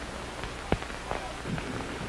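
Water splashes up.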